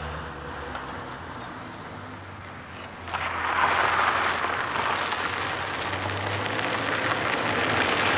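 A small van's engine hums as it drives along a road.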